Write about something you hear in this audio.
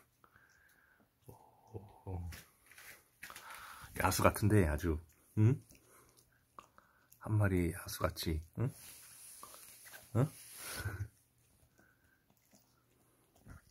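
A small dog chews and gnaws on a chewy treat.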